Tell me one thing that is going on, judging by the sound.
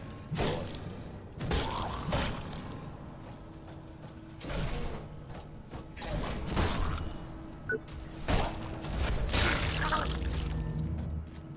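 Metal blades clang and scrape in quick bursts.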